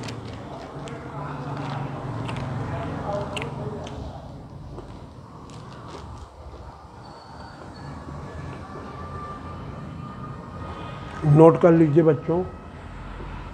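A man lectures calmly, close by.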